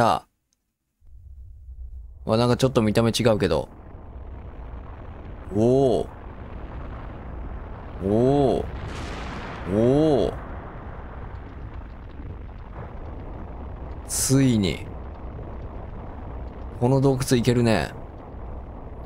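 A volcano rumbles deeply and steadily.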